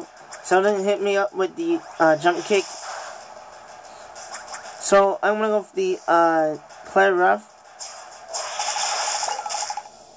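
Video game attack sound effects whoosh and crash.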